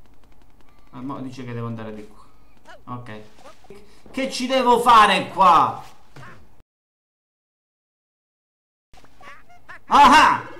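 A young man talks with animation into a close microphone, shouting at times.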